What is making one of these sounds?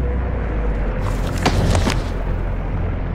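A bright metallic chime rings out as an item is picked up.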